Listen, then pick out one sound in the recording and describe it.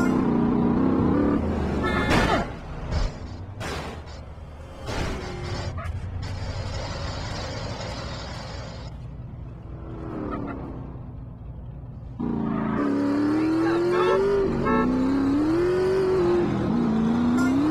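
A motorcycle engine roars, its pitch rising and falling as it revs.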